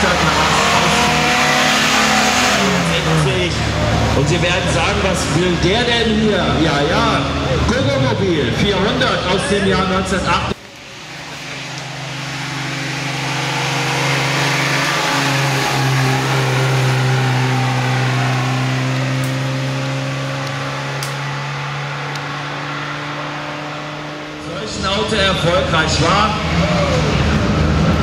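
A car engine revs hard and roars past.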